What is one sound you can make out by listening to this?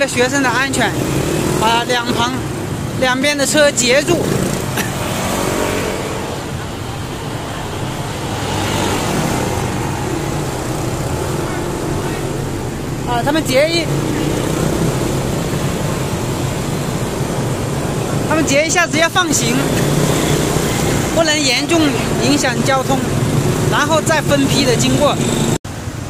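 Motorcycle engines hum and putter as they ride past on a road.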